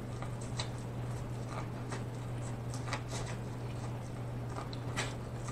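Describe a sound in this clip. A man bites and chews corn on the cob close to a microphone, with wet crunching and smacking.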